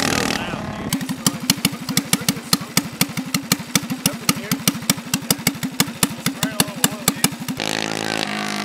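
A small engine idles with a rapid, chugging putter.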